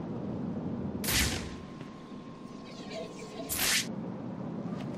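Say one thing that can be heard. A sharp electronic whoosh swells and cuts off.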